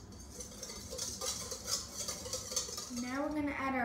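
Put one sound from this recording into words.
A whisk scrapes and clinks in a metal bowl.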